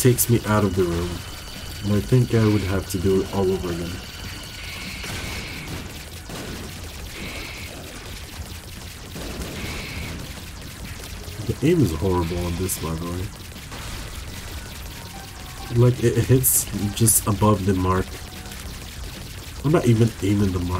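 Arcade game shots and blasts pop in rapid bursts.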